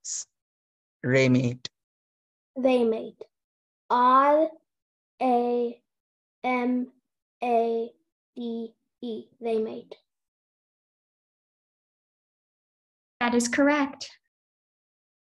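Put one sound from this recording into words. A young boy calls out in short, drawn-out bursts, heard through an online call.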